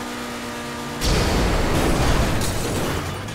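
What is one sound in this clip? A car crashes into a lamp post with a loud crunch.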